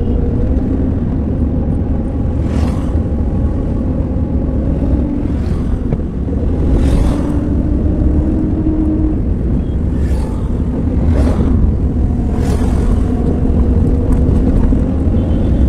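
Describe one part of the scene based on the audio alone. A car engine hums, heard from inside the cabin.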